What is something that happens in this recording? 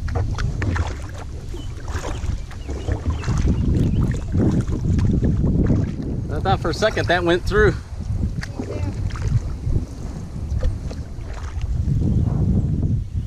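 Wind rumbles across open water outdoors.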